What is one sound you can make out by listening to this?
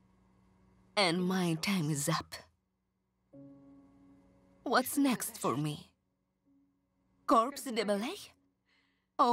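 A young woman speaks tearfully up close.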